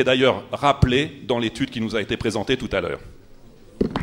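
A middle-aged man speaks with animation through a microphone in an echoing hall.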